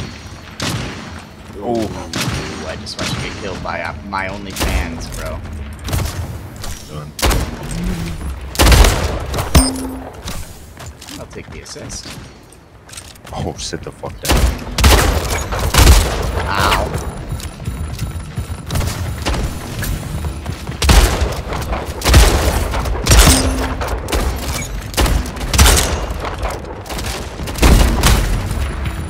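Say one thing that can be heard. Rifles fire in sharp bursts.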